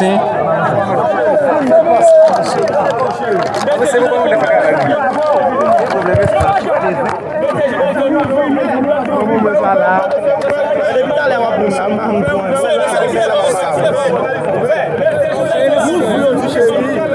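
A large crowd of men talks and shouts all around, close by.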